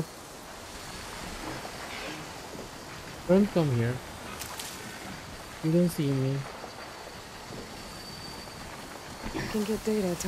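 Dry grass rustles as someone creeps through it.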